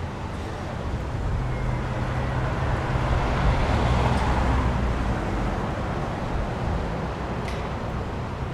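A motorhome engine rumbles as the vehicle drives closer and passes.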